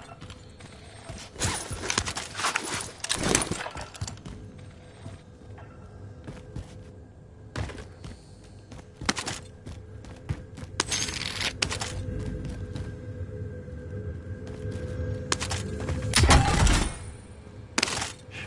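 Footsteps thud and scuff on a hard floor.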